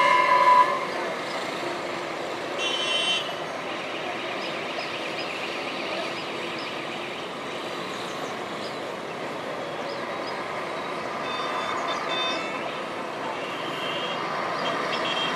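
Car horns honk now and then in the distance.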